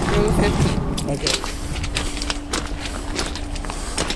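Footsteps crunch on gravel outdoors.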